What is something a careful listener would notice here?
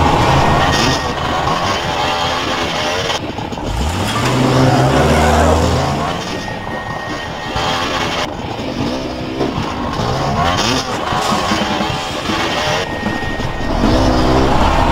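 A motorbike engine revs and whines.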